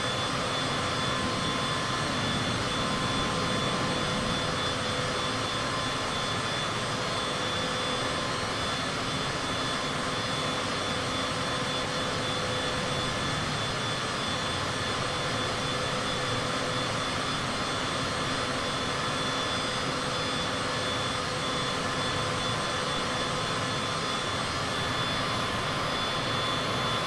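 A jet engine whines and roars steadily.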